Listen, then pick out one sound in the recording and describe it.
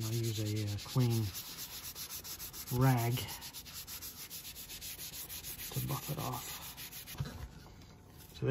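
A cloth rubs against a metal pipe.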